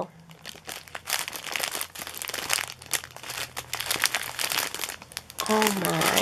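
Plastic bags crinkle and rustle as fingers flick through them.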